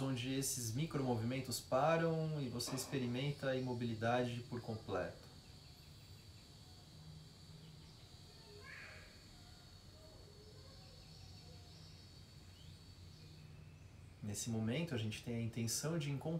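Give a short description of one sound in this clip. A young man speaks calmly and slowly, close by.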